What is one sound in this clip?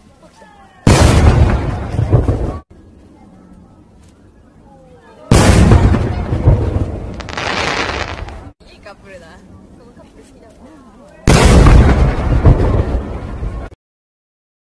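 Fireworks burst with loud booms and crackling.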